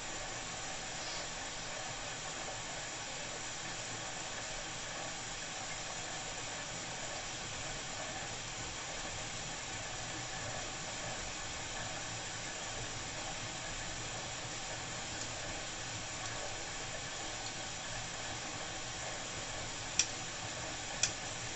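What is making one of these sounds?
Laundry tumbles and swishes inside a washing machine drum.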